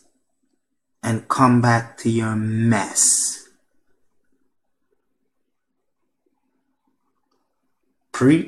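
A man speaks close to a microphone with emphasis.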